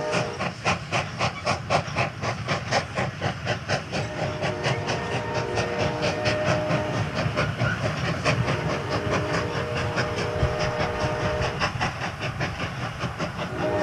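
A cartoon train clatters along the rails in a steady rhythm.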